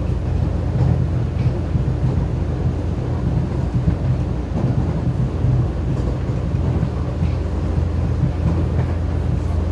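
A metro train rumbles past close by.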